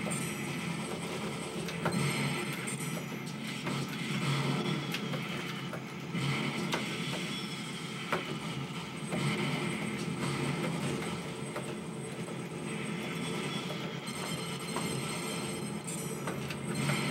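Arcade game music plays steadily.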